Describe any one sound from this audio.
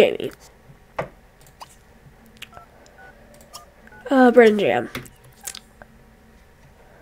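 Soft interface clicks sound now and then.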